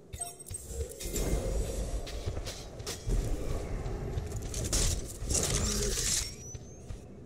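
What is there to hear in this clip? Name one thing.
Energy weapons blast and crackle in rapid bursts.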